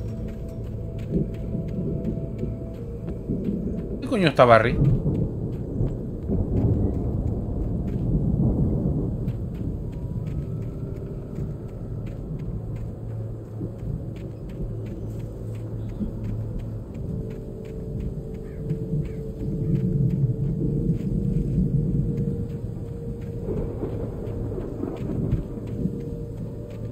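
Footsteps crunch steadily through grass and leaves.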